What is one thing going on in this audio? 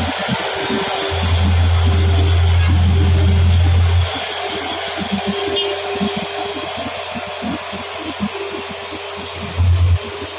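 A heavy truck engine rumbles close by as the truck drives past.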